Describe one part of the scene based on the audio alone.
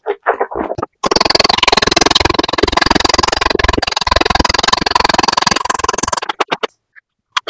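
A man slurps food loudly close to a microphone.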